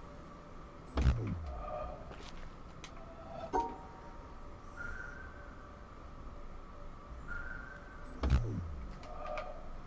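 A deep falling whoosh sounds.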